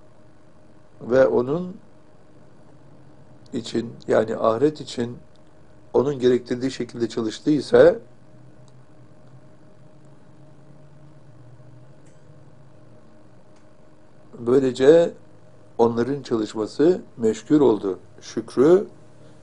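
An elderly man speaks slowly and calmly into a microphone, reading out with long pauses.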